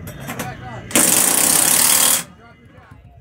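An impact wrench whirs loudly in short bursts.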